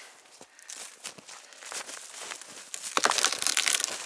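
A tree trunk creaks and cracks as it breaks.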